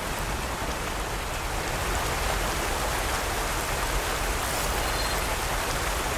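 Water rushes and splashes steadily nearby.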